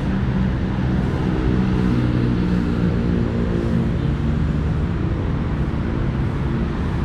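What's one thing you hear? A pond aerator's motor hums steadily.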